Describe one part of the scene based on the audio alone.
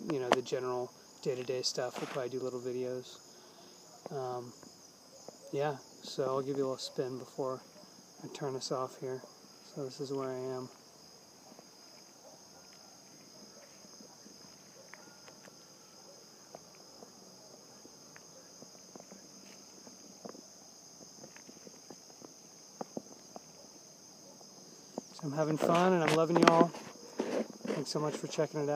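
A man talks calmly and close up, outdoors.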